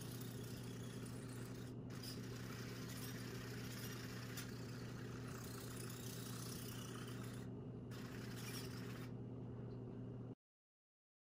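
A small toy robot car's electric motors whir steadily as it rolls.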